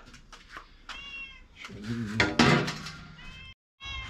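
A metal pan clatters onto a metal sink.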